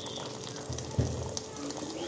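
Water pours into a pot of broth.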